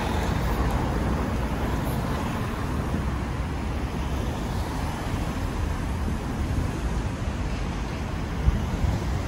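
Cars drive past close by on a street.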